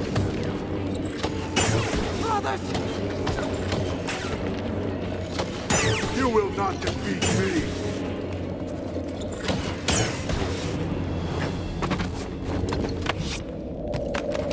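A lightsaber hums steadily.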